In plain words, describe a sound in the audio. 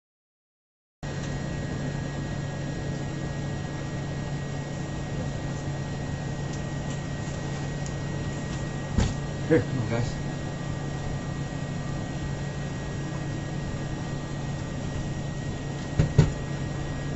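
Machinery hums steadily with a constant low whine.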